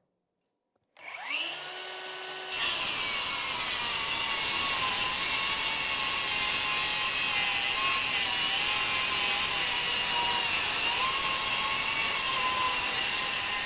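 A circular saw spins up and cuts loudly through wood with a steady high whir.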